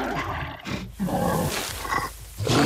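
A bear growls loudly.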